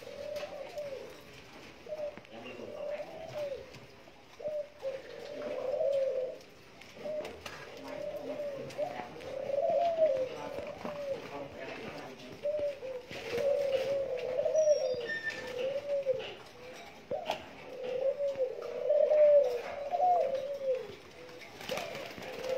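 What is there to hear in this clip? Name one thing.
Doves coo repeatedly in soft, rolling calls close by.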